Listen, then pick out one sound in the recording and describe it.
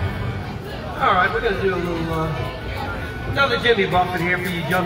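A man sings into a microphone, heard through a loudspeaker.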